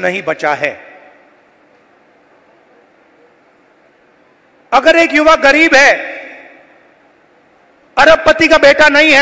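A man speaks forcefully into a microphone over loudspeakers, echoing outdoors.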